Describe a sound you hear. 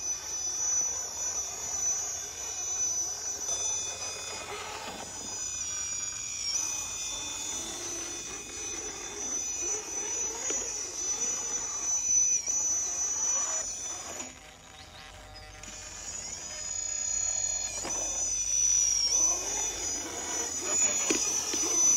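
A small electric motor whines steadily, rising and falling as a toy truck climbs over rock.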